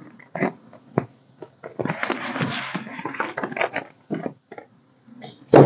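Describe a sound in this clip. Plastic pages rustle and crinkle as a binder is handled.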